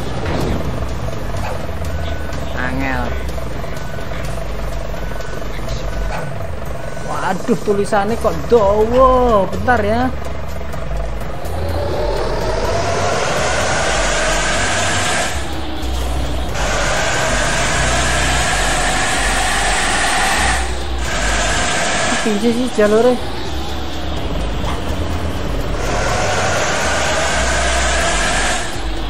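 A bus engine hums and revs up as the bus drives along.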